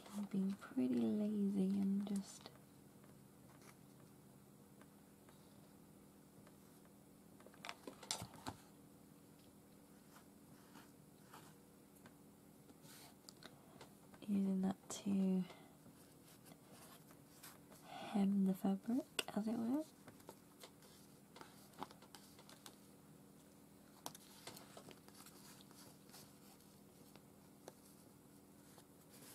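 Paper rustles and crinkles softly under hands.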